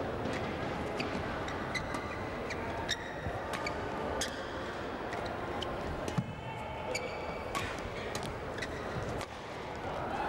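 Badminton rackets strike a shuttlecock with sharp, quick pops.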